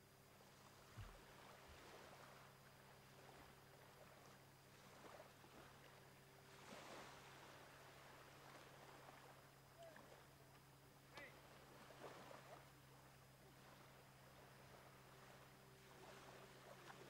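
Gentle waves lap softly against rocks.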